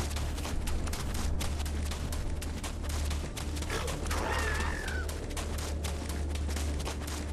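Footsteps tread steadily over the ground.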